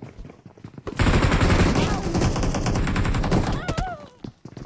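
Rapid gunshots ring out close by.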